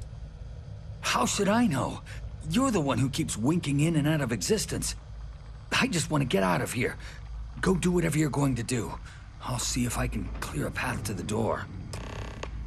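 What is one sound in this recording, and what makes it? A man speaks calmly and close by, in a low voice.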